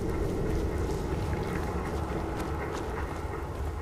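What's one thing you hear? Electricity crackles and sizzles.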